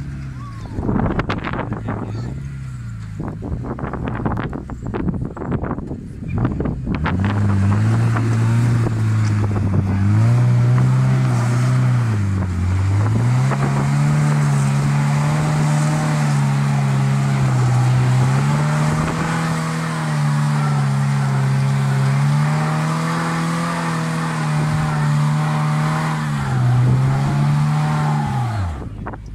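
An off-road car engine revs hard, rising and falling again and again.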